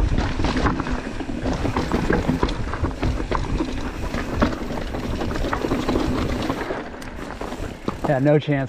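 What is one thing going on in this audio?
Bike tyres crunch and rattle over a rocky dirt trail.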